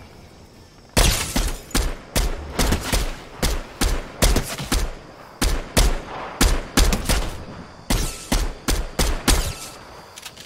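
A rifle fires rapid single shots.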